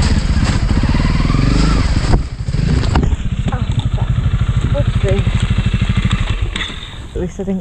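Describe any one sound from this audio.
A motorbike engine roars and revs close by.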